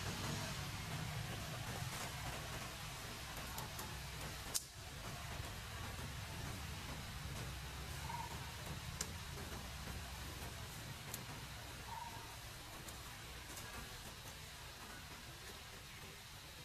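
A monkey's fingers rustle softly through fur while grooming.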